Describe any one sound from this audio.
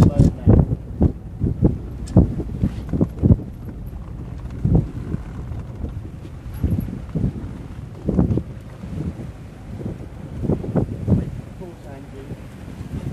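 Water rushes along a sailing boat's hull.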